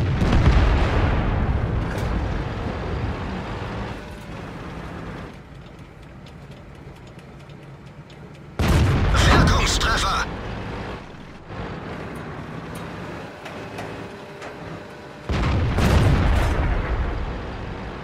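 A tank cannon fires with a loud boom that rumbles away.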